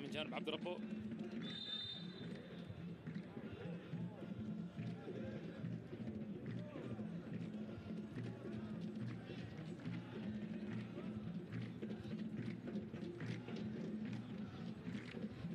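A crowd of fans chants rhythmically in an open stadium.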